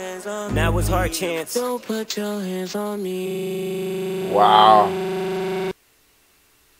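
Music with a singing voice plays through a loudspeaker, then stops abruptly.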